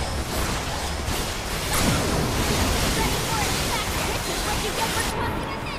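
Sword strikes clang against a large creature.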